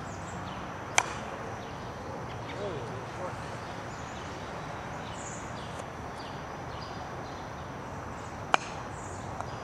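A wooden mallet sharply strikes a croquet ball outdoors.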